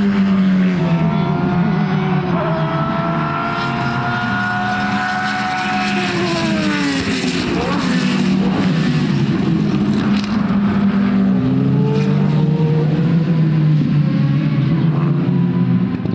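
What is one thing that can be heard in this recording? A racing car engine screams at high revs, rising and falling as the driver shifts gears.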